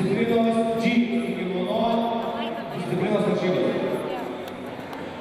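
A man shouts loudly and urgently nearby in a large echoing hall.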